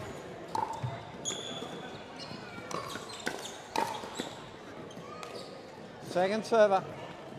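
Shoes squeak on a hard indoor court.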